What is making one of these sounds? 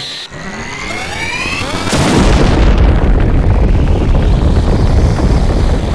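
A huge blast roars and rumbles.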